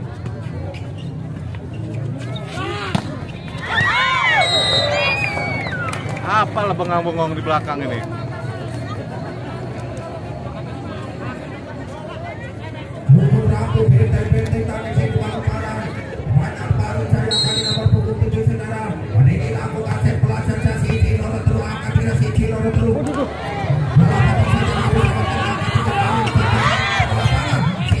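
A volleyball thuds as players hit it back and forth.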